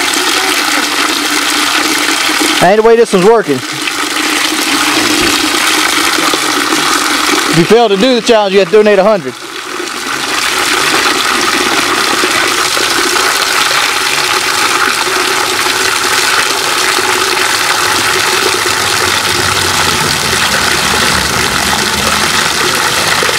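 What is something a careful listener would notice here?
Water sprays from a hose and splashes steadily into a bucket of water.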